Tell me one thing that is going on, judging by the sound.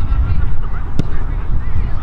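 A boot kicks a rugby ball with a sharp thud.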